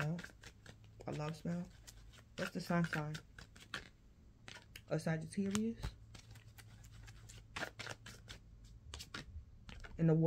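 Playing cards shuffle and flick in a woman's hands.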